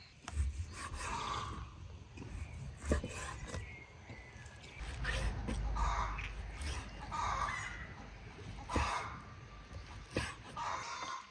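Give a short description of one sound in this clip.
A knife cuts through meat and taps on a wooden board.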